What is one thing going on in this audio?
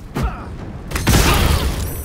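A magic blast explodes with a loud roaring burst.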